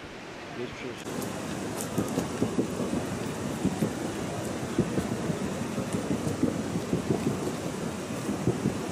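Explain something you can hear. A young man talks on a phone.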